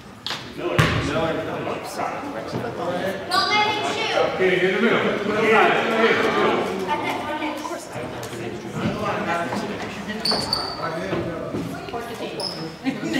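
Children and adults shout and cheer in a large echoing hall.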